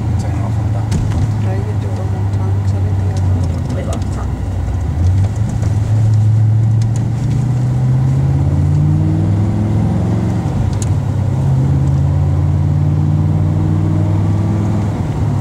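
A car engine roars loudly as it accelerates, rising in pitch and dropping briefly at each gear change.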